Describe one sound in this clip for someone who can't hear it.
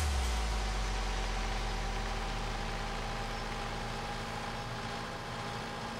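A tractor engine hums steadily as it drives.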